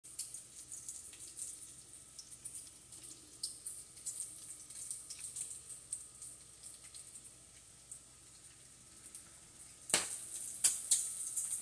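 Bacon sizzles and crackles in a frying pan.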